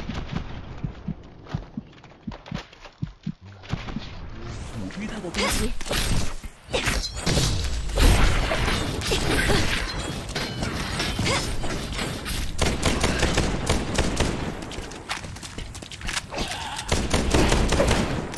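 Rapid gunfire cracks and rattles.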